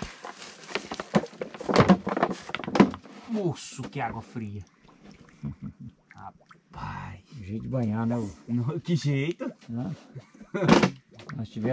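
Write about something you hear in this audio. Water gurgles into a plastic bottle in a shallow stream.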